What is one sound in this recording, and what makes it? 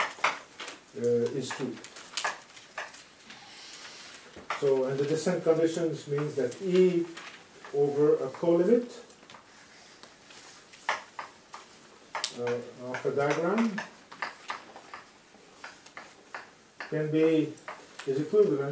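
A man lectures calmly in an echoing room, with pauses.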